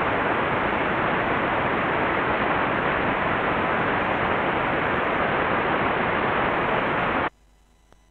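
Loud, steady radio static hisses, then cuts off abruptly.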